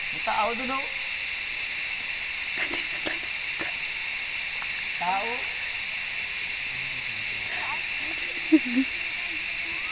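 Children call out to each other at a distance outdoors.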